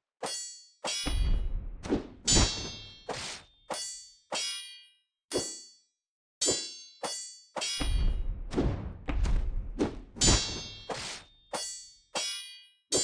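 Blades swish through the air.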